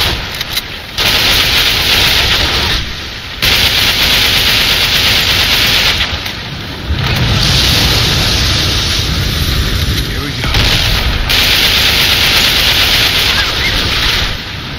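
Rapid automatic gunfire rattles in long bursts.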